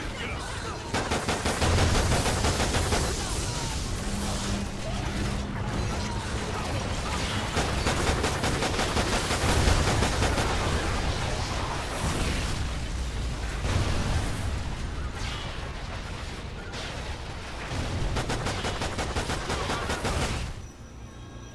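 A pistol fires in rapid bursts.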